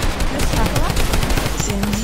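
A gun fires in quick bursts.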